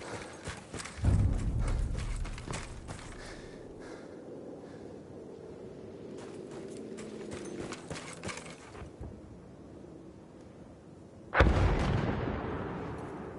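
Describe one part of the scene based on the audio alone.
Loud explosions boom and rumble.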